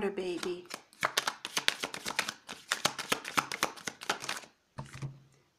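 Playing cards riffle and flap quickly as they are shuffled by hand.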